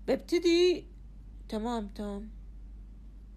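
A middle-aged woman speaks briefly in drawn-out tones close to a phone microphone.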